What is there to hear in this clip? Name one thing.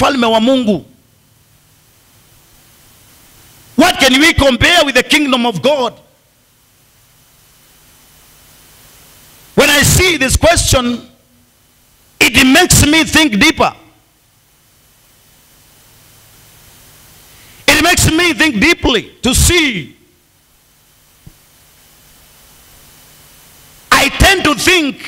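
A man preaches loudly and with passion through a microphone, in bursts with pauses between.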